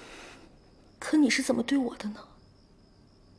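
A young man speaks close by in a low, hurt voice.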